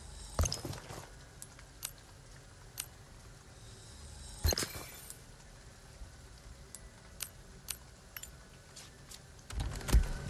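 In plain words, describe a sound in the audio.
Short interface clicks and chimes sound one after another.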